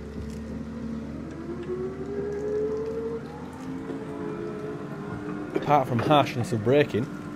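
A forklift engine hums and idles steadily.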